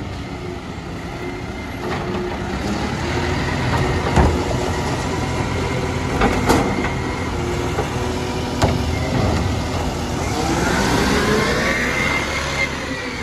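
A garbage truck's engine idles and hums steadily close by.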